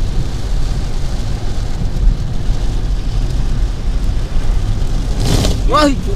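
A car engine rumbles low inside the car.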